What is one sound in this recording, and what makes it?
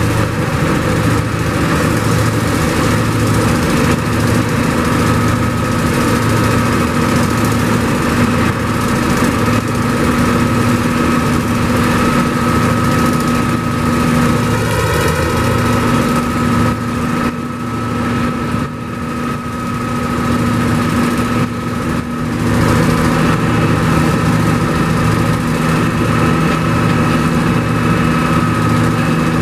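A heavy diesel engine drones steadily and loudly close by.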